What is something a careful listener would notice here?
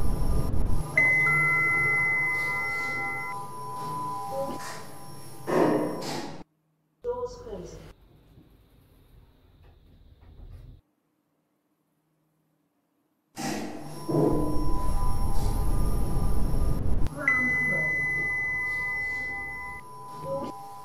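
An elevator chime dings.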